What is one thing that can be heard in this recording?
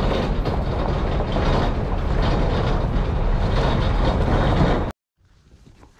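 A vehicle drives along a rough dirt road with a loud rumbling roar.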